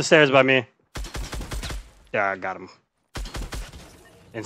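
Gunshots crack from a game.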